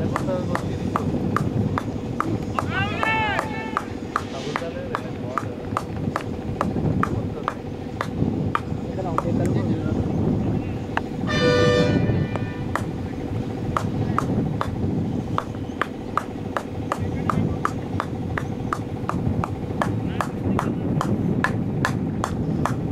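Men talk and call out to each other outdoors, a little way off.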